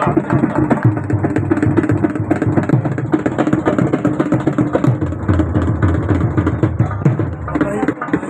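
A man beats a large double-headed drum in a fast, steady rhythm.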